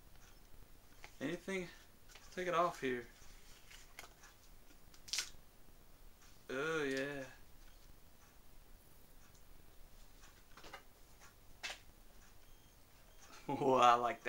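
Packaging rustles and crinkles in a man's hands.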